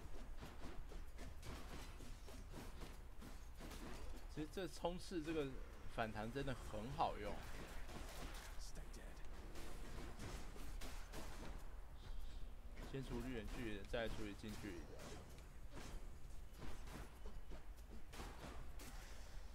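A sword swishes and strikes in quick combat.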